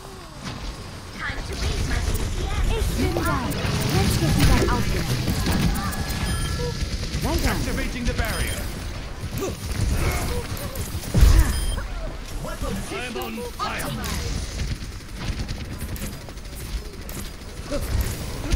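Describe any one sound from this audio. Game weapons fire in rapid bursts and crackle.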